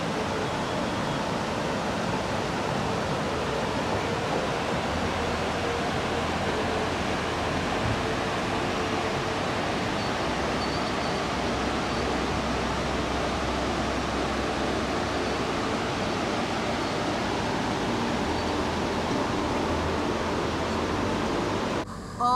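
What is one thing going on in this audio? A river rushes over rocks nearby in a steady roar.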